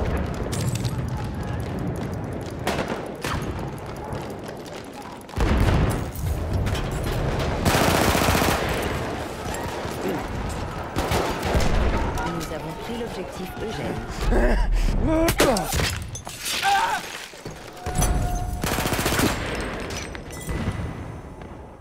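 Gunfire rattles in quick bursts close by.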